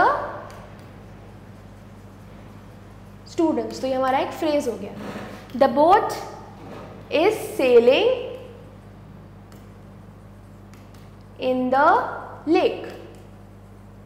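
A young woman speaks clearly and calmly into a close microphone.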